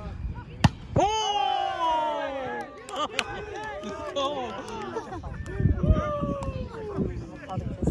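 Several young people cheer and shout loudly together.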